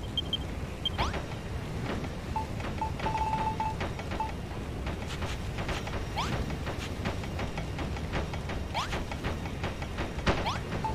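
A game hammer whooshes through the air in swings.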